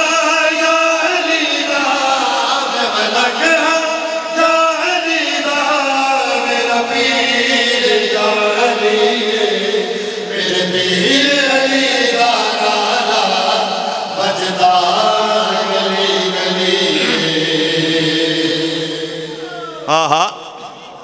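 Several men sing along together through microphones.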